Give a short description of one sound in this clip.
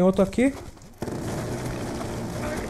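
A rapid-firing gun fires a burst of shots.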